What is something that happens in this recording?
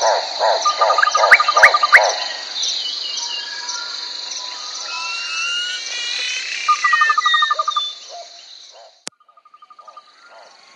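Water sloshes softly as a crocodile swims.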